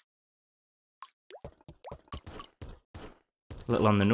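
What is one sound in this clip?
Short electronic blips sound as a video game character jumps.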